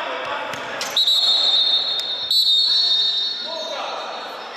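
A referee blows a whistle in short, shrill blasts.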